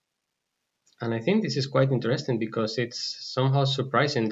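A man speaks calmly into a close microphone, as in an online talk.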